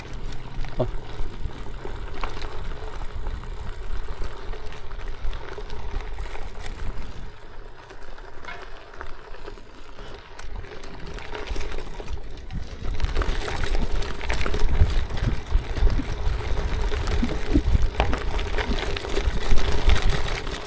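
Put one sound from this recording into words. Bicycle tyres crunch over gravel and wood chips.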